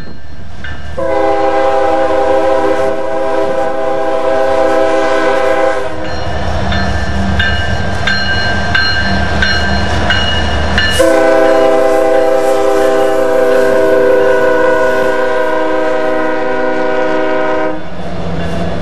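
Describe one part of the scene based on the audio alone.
A diesel freight locomotive blasts its air horn in long blasts.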